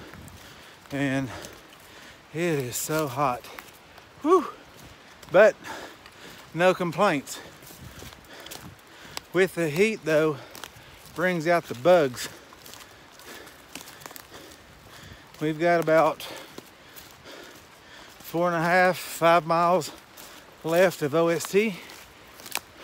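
A man talks close up, in short bursts with pauses, slightly breathless.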